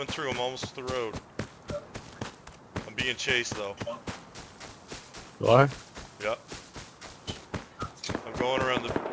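Footsteps crunch steadily over dirt and gravel.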